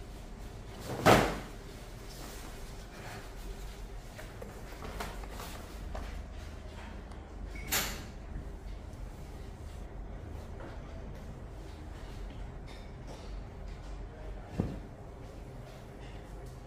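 A cloth cape rustles and flaps as it is shaken out.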